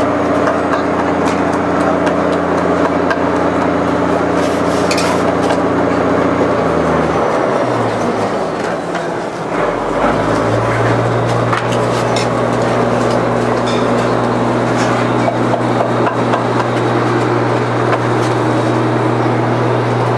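A metal ladle scrapes and clinks against a pot.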